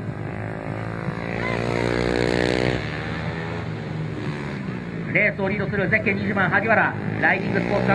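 A motorcycle engine roars loudly as a bike races past.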